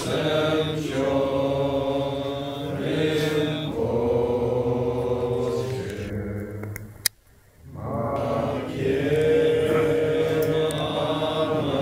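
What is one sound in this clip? Several men chant together in low, steady voices in a room with a slight echo.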